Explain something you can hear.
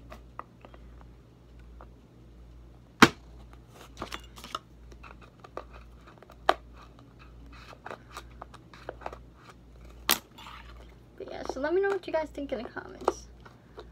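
A plastic bottle clicks and taps in handling, close by.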